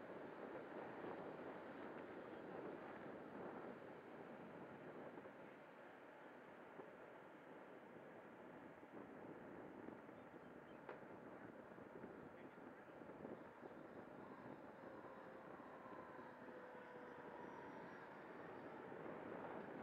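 Wind rushes loudly past the microphone as it flies through the air.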